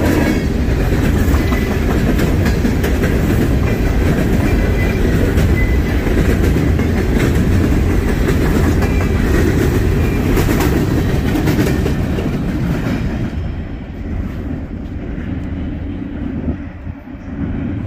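Freight cars rumble and clatter past on the rails, close by, then fade into the distance.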